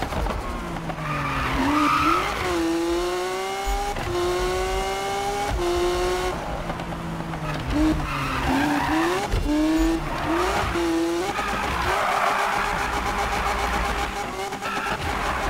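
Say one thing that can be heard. Tyres screech as a car drifts through bends.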